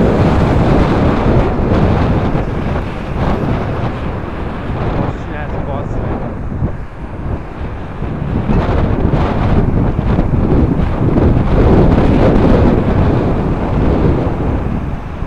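A vehicle's engine rumbles steadily from inside the cab as it drives.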